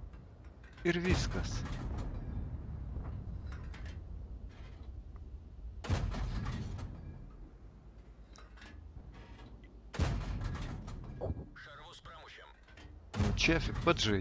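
A tank cannon fires with a heavy, booming blast.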